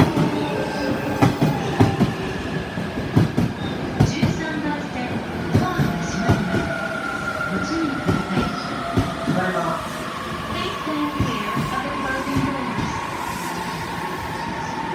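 A train rolls past close by, wheels clattering over rail joints.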